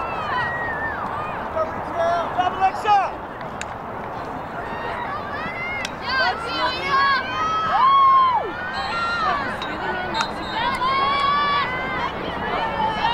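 Young girls shout and call to each other across an open field outdoors.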